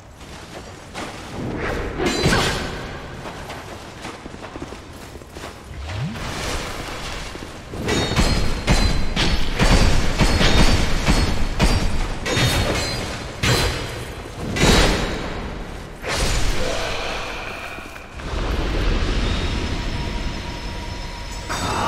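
Footsteps thud on stone floor.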